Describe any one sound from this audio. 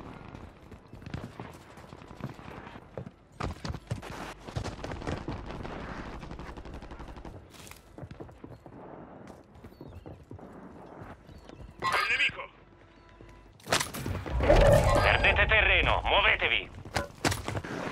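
Quick footsteps thud on hard ground.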